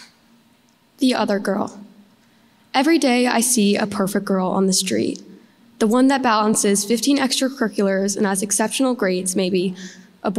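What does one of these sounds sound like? A young girl reads out calmly into a microphone in a large room.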